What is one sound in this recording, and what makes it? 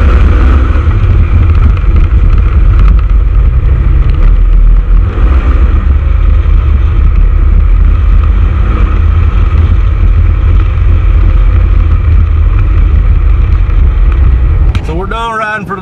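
A vehicle engine rumbles loudly and steadily close by.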